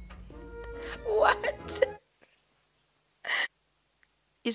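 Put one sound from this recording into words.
A young woman laughs into a close microphone.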